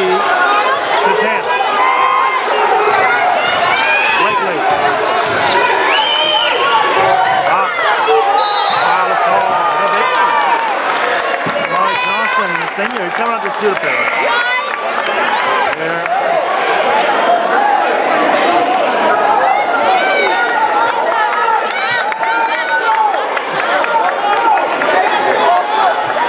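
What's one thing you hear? A crowd of spectators cheers and shouts loudly in an echoing gym.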